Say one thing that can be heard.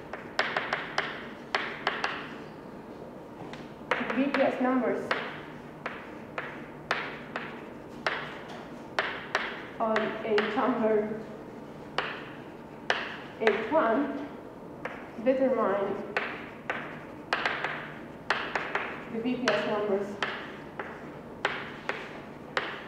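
Chalk taps and scrapes sharply on a board.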